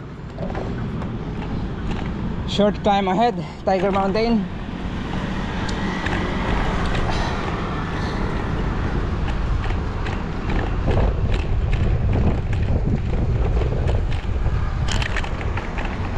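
Wind rushes and buffets loudly past a moving scooter outdoors.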